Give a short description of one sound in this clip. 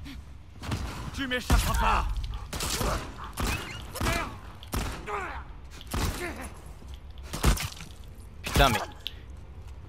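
Gunshots crack sharply several times.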